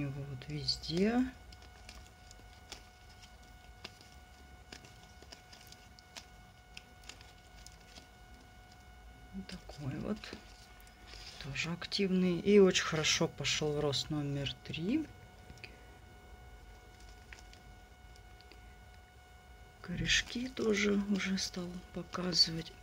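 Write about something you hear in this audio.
A thin plastic cup crinkles softly in a hand.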